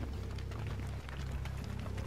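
Fire crackles in a brazier.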